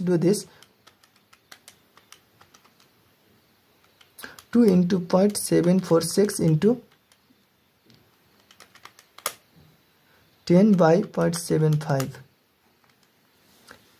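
Calculator keys click softly as they are pressed.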